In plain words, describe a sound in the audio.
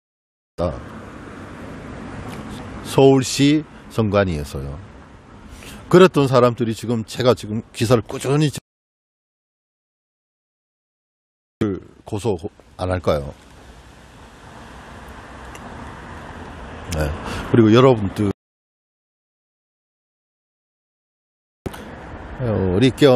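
A middle-aged man speaks calmly and close to a clip-on microphone, outdoors.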